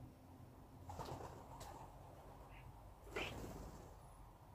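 Pigeon wings flap briefly.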